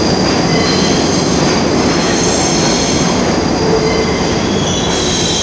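Train wheels squeal with high, steady whines.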